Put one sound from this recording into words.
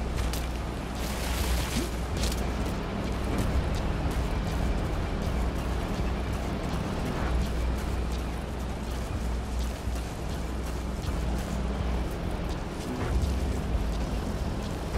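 Footsteps run quickly over dry ground and grass.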